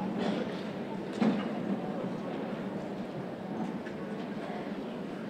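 A large concert band plays music in an echoing hall.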